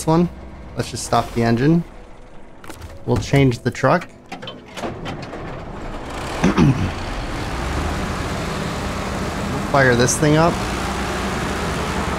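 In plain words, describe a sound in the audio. A heavy truck engine rumbles low and steadily.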